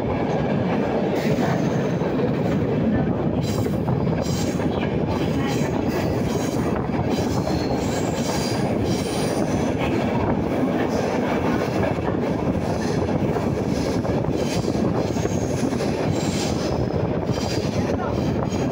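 A subway train rumbles loudly along the tracks.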